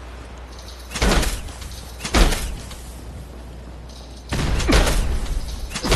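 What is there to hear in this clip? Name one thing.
A motorised saw blade grinds loudly against metal in short bursts.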